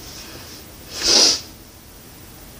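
A young woman exhales sharply.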